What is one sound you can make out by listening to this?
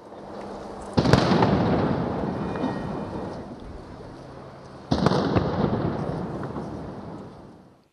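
A cannon fires loud booming shots that echo across the water.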